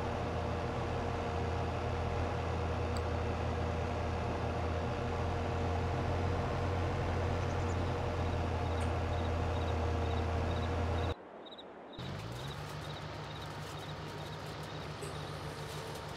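A tractor engine drones steadily at low pitch.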